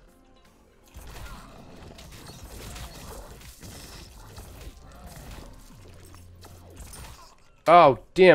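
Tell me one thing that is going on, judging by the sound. Rapid electronic game shots and small blasts crackle and pop.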